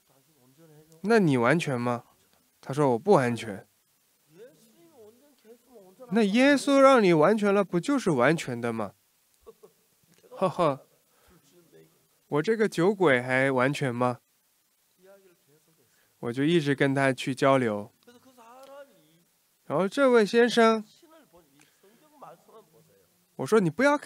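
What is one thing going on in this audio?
An elderly man speaks slowly and deliberately into a microphone, in bursts with pauses.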